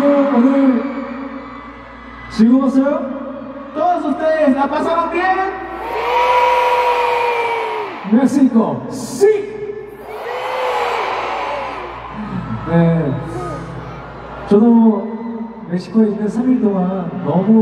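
A young man sings through loudspeakers in a huge echoing arena.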